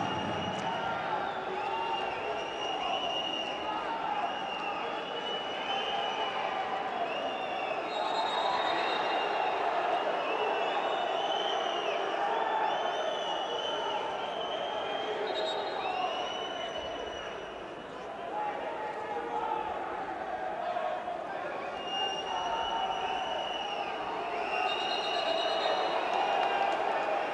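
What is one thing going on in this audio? A stadium crowd cheers and chants in a large open space.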